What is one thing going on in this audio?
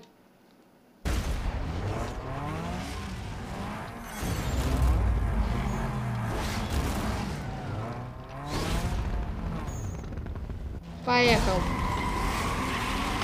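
Racing car engines roar and rev loudly.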